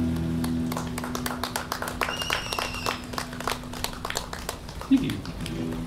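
An electric guitar chord rings out and slowly fades.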